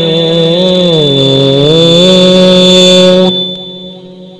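A young man chants in a long, wavering melody through a loudspeaker, echoing after he stops.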